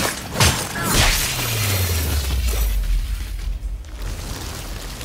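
An explosion booms, followed by a deep rumble that slowly fades.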